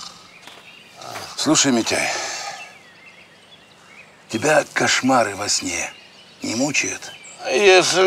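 A man cries out loudly close by.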